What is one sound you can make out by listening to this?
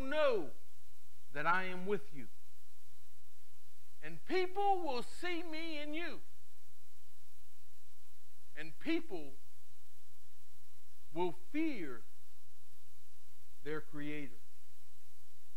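A middle-aged man speaks slowly and earnestly in short phrases, with long pauses.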